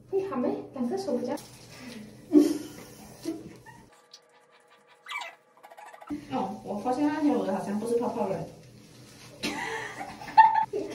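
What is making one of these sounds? Young women talk and chat with animation close by.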